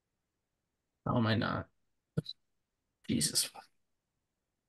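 A man answers briefly over an online call.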